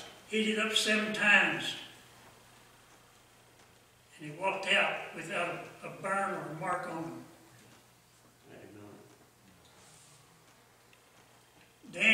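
An elderly man speaks slowly and calmly into a microphone.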